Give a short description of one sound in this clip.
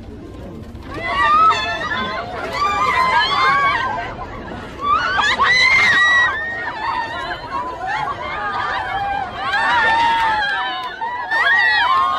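Young women cry and shout excitedly close by.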